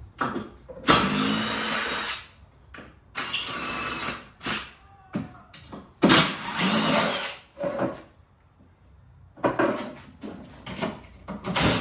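A compressed-air tool hisses loudly in short bursts.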